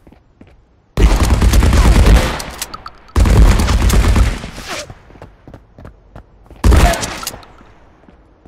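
A gun fires loud rapid bursts that echo.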